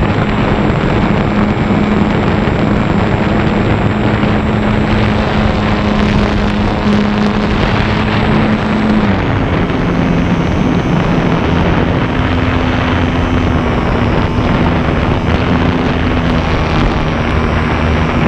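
Wind rushes past a radio-controlled model plane in flight.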